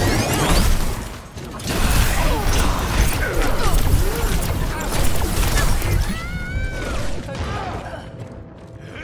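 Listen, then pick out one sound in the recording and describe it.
Rapid gunfire crackles and booms in a game.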